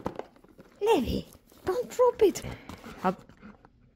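A cardboard box rattles and scrapes.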